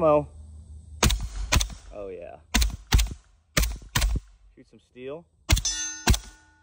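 A suppressed gun fires sharp shots in quick pairs outdoors.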